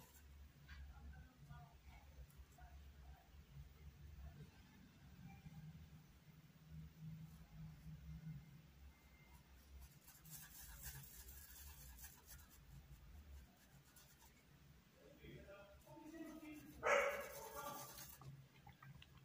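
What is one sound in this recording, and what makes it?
A brush swishes and taps in a small cup of water.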